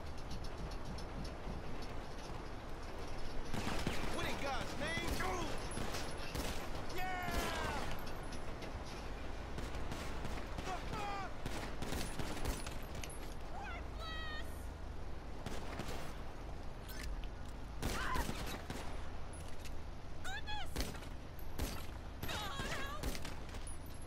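A pistol fires sharp shots in quick bursts.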